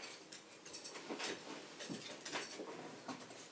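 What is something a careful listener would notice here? A metal bowl clinks as it is picked up.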